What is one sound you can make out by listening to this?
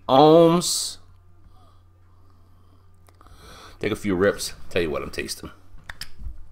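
A middle-aged man speaks calmly and close up.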